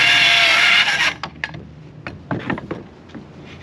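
A circular saw blade spins down after the cut.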